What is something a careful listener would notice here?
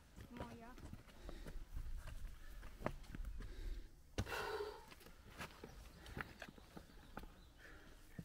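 Boots crunch on a stony path as hikers approach.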